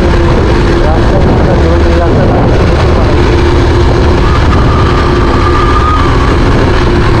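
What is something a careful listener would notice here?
Wind buffets the microphone of a moving motorcycle.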